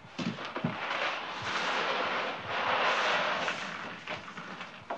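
Dry food pellets pour and patter onto paper.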